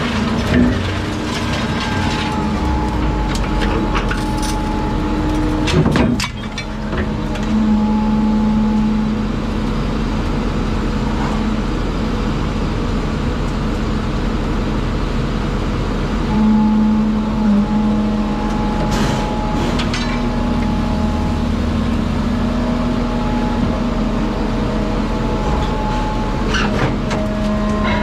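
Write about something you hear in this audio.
Scrap metal clanks and scrapes against steel.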